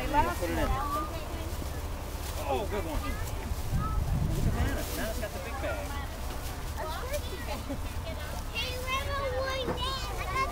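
Plastic shopping bags rustle.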